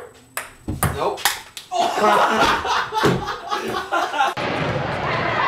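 A ping-pong ball clicks against paddles and a table.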